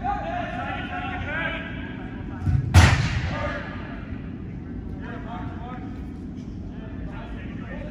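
Players shout to each other across a large echoing indoor hall.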